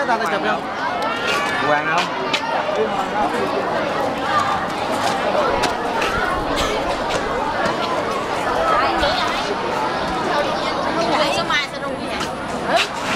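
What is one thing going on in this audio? A crowd of children and adults chatter all around, close by.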